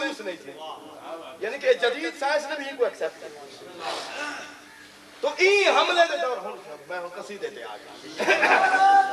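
A man speaks with emotion through a loudspeaker in an echoing hall.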